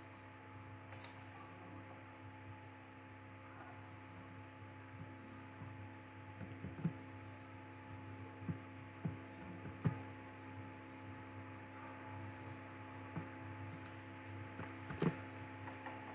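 A mouse button clicks.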